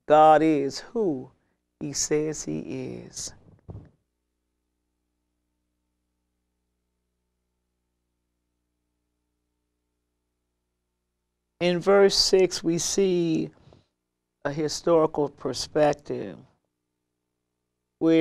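A middle-aged woman speaks calmly and reads aloud into a close microphone, with long pauses.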